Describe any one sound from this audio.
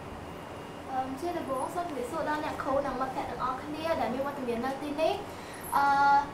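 A young girl speaks softly.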